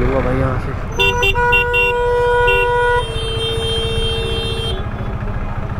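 A vehicle horn honks nearby.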